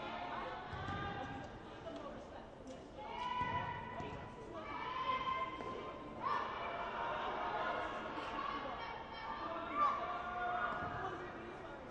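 A crowd chatters faintly in a large echoing hall.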